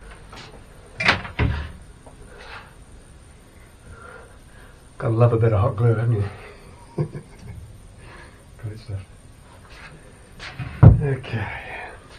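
Tools knock and clatter on a workbench.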